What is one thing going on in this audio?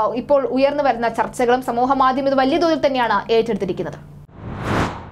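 A young woman speaks clearly and steadily into a microphone, like a news reader.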